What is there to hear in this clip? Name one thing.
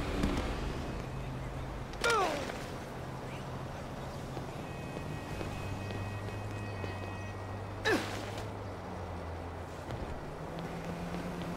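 Footsteps run on pavement.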